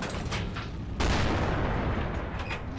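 A tank cannon fires with a loud boom that rumbles away.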